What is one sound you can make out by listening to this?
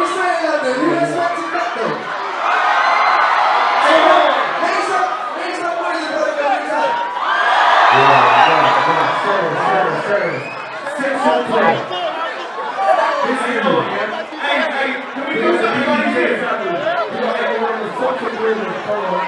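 A dense crowd cheers and shouts loudly all around.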